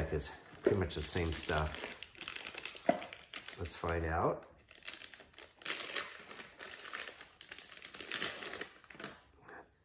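A plastic bag crinkles as someone handles it.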